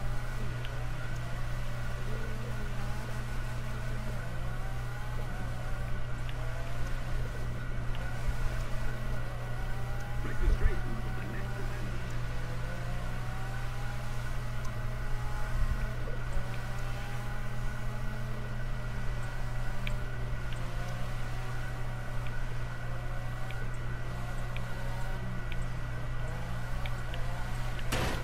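A rotary-engined sports car revs hard while drifting.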